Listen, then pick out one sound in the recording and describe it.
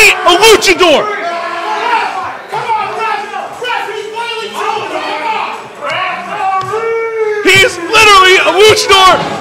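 A crowd of men and women shouts and cheers loudly nearby.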